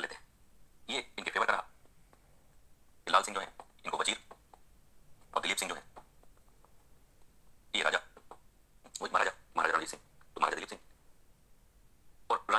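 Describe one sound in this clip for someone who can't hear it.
A middle-aged man lectures with animation in short bursts, heard through a phone speaker.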